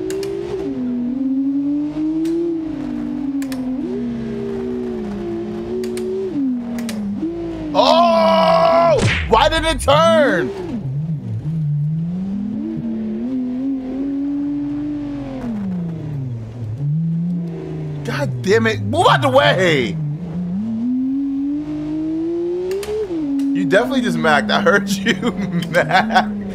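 A car engine revs and drones steadily, rising and falling in pitch.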